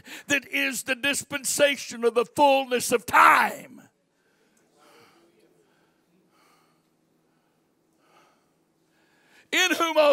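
A man preaches with animation through a microphone in a large echoing hall.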